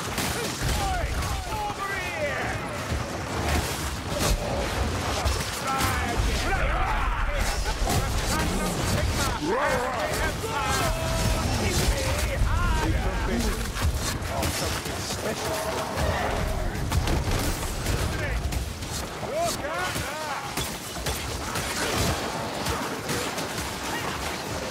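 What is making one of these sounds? Monsters snarl and roar in a frenzied crowd.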